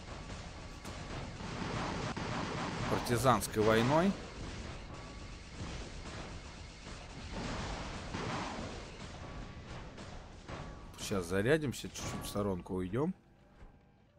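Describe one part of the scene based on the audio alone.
Heavy machine guns fire in rapid bursts.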